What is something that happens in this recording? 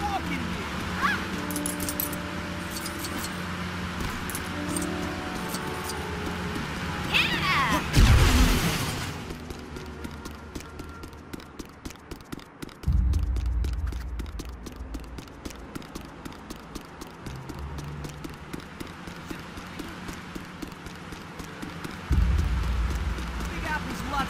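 Quick light footsteps patter along a hard surface.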